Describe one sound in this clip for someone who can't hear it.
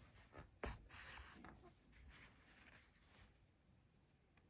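Yarn rustles softly.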